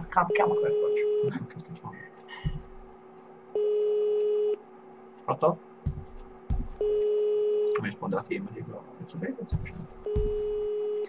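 A phone rings in repeated, steady bursts.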